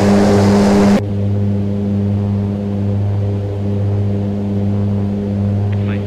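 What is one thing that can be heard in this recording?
A propeller plane's engines hum, muffled, from inside the cockpit.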